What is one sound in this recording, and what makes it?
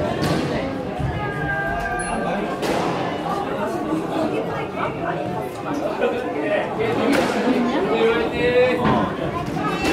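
Sports shoes squeak on a wooden court floor.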